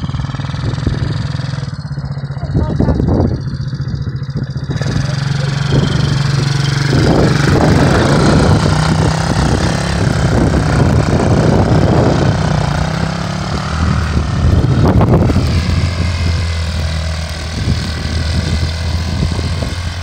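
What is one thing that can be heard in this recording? A small quad bike engine idles, then revs up and drives off, fading into the distance.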